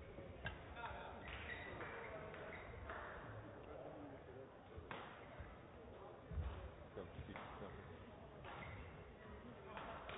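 Young men talk quietly in a large echoing hall.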